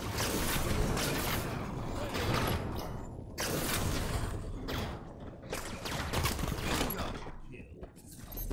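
Rapid gunfire and blasts ring out.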